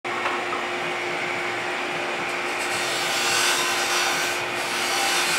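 A gouge scrapes and hisses against spinning wood.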